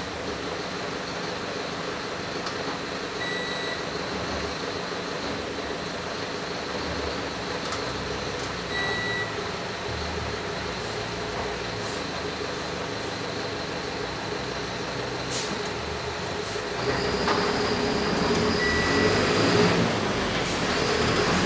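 A bus rattles and creaks as it drives along.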